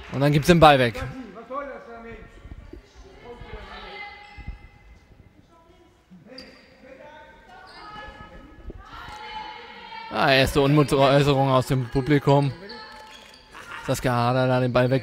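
A handball bounces on the hall floor.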